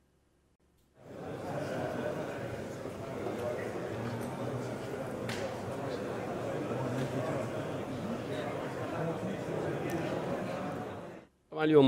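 A crowd of people murmurs and chatters in a large room.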